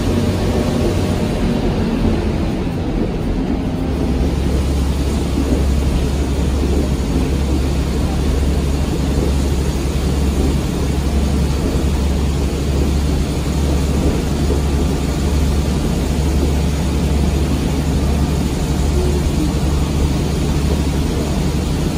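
Train wheels rumble and clatter over the rails.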